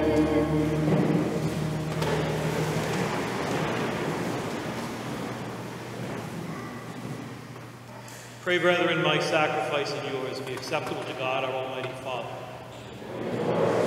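A middle-aged man chants through a microphone in a large echoing hall.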